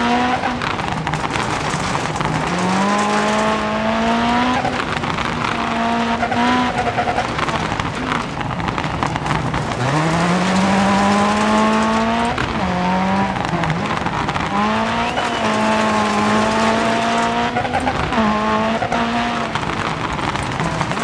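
Gravel sprays and crunches under a car's tyres.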